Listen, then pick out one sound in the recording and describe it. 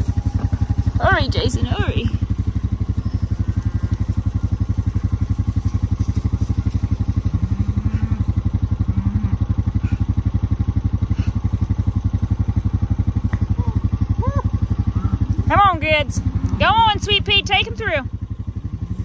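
A man calls out loudly to cattle.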